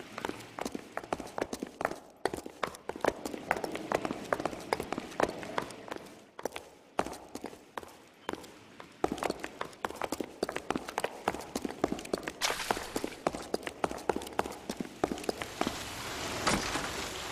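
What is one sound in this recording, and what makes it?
Quick footsteps tap and scuff on a hard stone floor.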